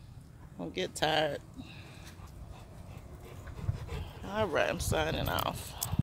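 A dog barks and yelps nearby.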